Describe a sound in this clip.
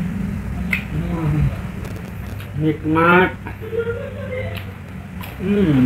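A young man hums and moans with pleasure close up.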